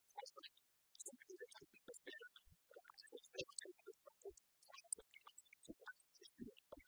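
Keys click on laptop keyboards.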